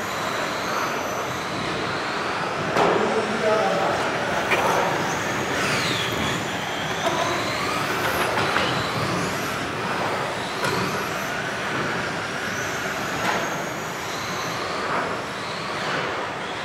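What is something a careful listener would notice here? Toy car wheels hum across a hard floor in a large echoing hall.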